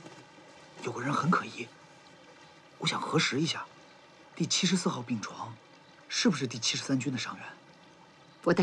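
A young man speaks in an earnest tone.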